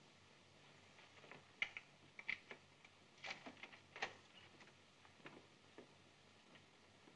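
Footsteps tap on a wooden floor and move away.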